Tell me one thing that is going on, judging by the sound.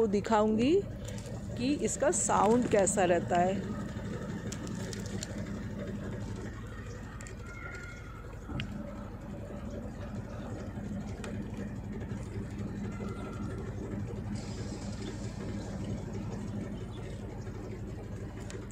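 A washing machine drum spins with a steady low hum.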